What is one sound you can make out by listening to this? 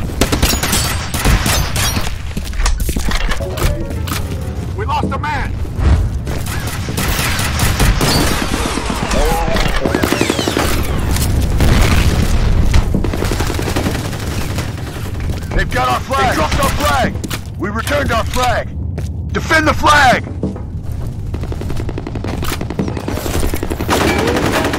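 Gunshots bang in quick bursts.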